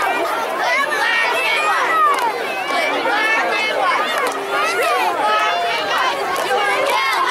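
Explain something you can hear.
A group of young girls chant a cheer together loudly outdoors.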